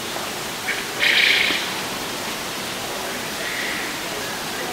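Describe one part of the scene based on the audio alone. A sparrow chirps in short bursts nearby.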